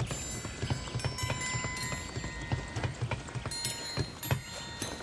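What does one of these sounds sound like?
Footsteps clank rhythmically on a metal ladder.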